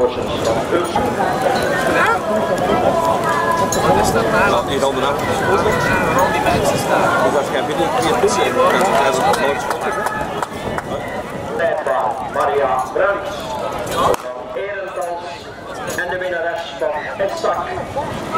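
A crowd of spectators cheers and shouts encouragement outdoors.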